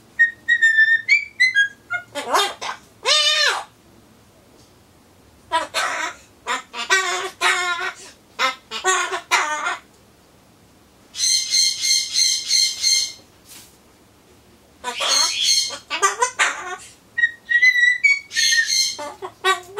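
A cockatoo squawks, whistles and chatters loudly in bursts close by.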